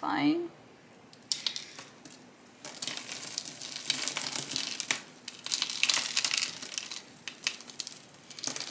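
Loose soil and bark chunks crumble and rustle close by.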